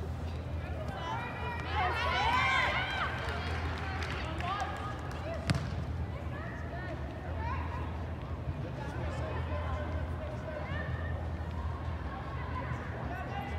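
Young women shout and call out across a large echoing indoor field.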